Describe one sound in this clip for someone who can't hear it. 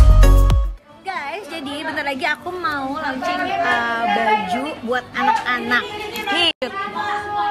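A young woman talks with animation close to a phone's microphone.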